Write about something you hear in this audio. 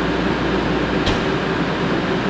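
A vehicle door slams shut.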